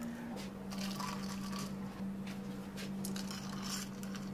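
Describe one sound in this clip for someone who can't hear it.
A spoon clinks against ice in a glass.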